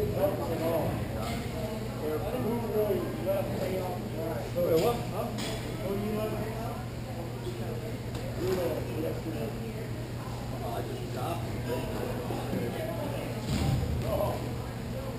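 Skates and sticks clatter across a large echoing rink.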